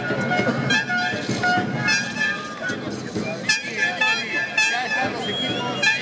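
A crowd of people shouts and cheers outdoors.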